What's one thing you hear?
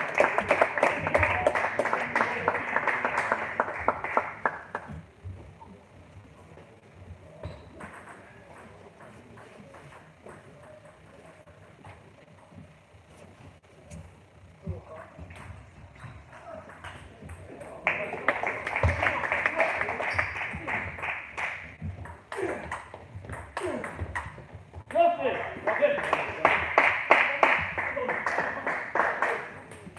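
A table tennis ball clicks quickly back and forth on paddles and a table in an echoing hall.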